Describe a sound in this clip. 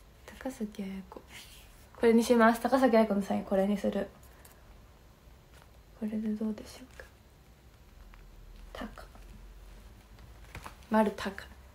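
A young woman talks animatedly and close up into a microphone, in short bursts.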